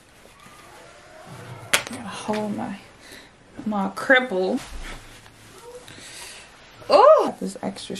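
Fabric rustles as a garment is handled.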